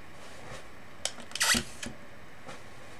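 A hair dryer knocks against a table as it is shifted.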